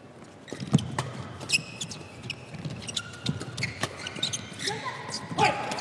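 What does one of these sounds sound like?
Shoes squeak sharply on a hard court floor.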